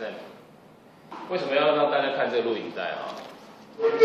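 A man talks steadily, slightly distant, in a room with some echo.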